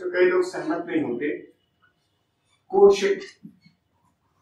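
A man speaks calmly, as if lecturing.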